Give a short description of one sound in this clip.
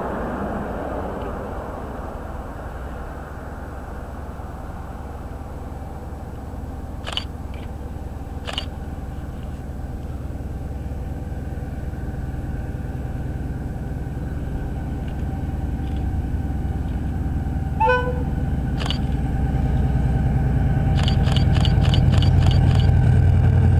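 A diesel train engine rumbles as it approaches, growing steadily louder.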